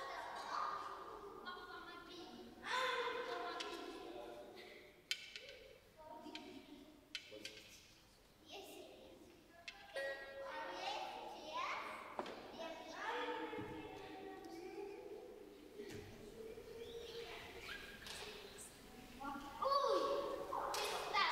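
A wooden wind instrument plays a wavering melody in a large echoing hall.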